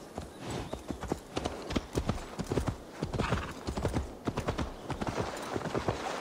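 Horse hooves thud steadily on the ground at a trot.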